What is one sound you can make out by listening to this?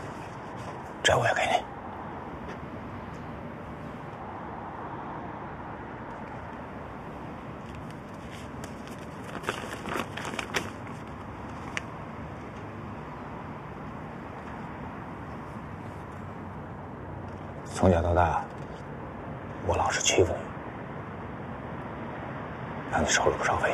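A man speaks in a low, quiet voice close by.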